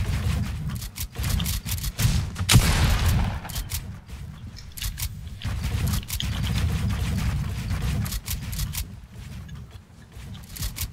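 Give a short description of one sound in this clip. Wooden building pieces snap into place with quick, sharp clacks.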